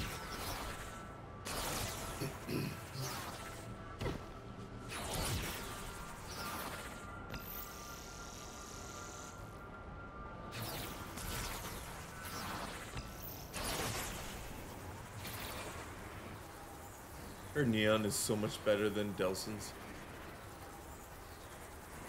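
Energy whooshes and crackles in rushing bursts.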